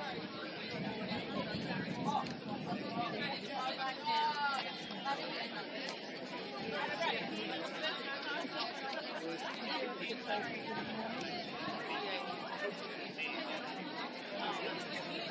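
Many young women chatter and call out at a distance, outdoors.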